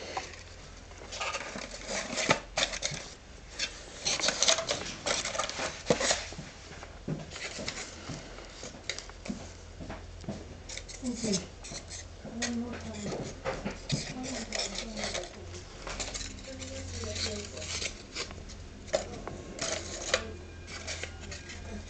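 Cardboard pieces knock and tap against a box.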